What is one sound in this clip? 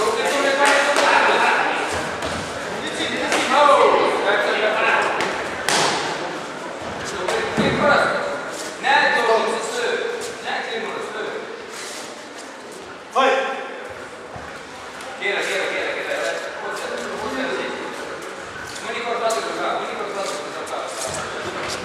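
Gloved punches thud in quick bursts.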